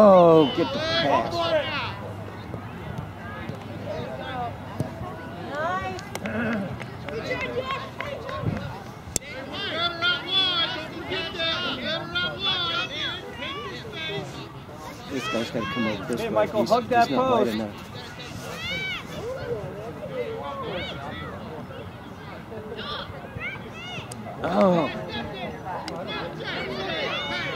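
Young players call out to each other across the field.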